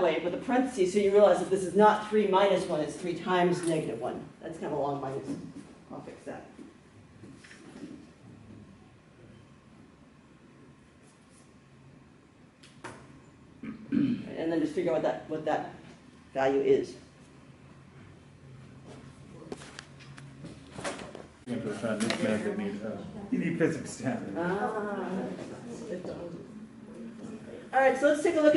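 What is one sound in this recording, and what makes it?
A woman explains calmly, close by.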